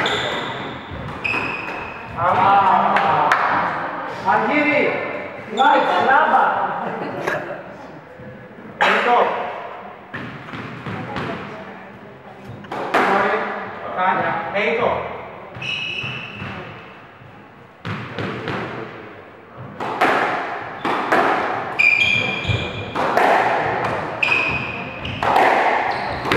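A squash ball smacks against the walls with a sharp echo.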